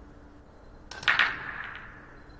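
A cue strikes a ball with a sharp crack.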